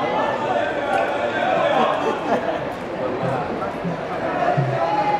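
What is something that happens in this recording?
A crowd murmurs and chatters in an open stadium.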